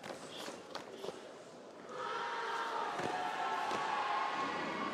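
Karate uniforms snap sharply with quick strikes and stamping feet.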